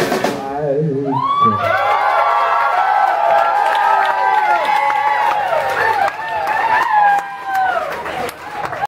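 Drums are played loudly.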